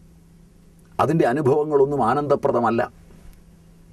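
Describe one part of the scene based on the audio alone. An elderly man speaks with animation into a close microphone.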